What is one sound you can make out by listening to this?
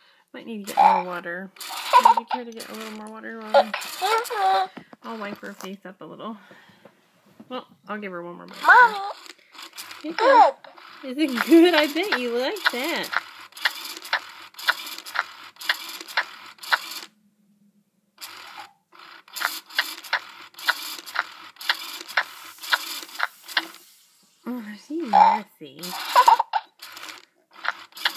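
A toy doll babbles in a high, childlike electronic voice.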